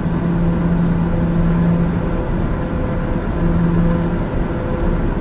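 A single-engine turboprop drones steadily in cruise, heard from inside the cockpit.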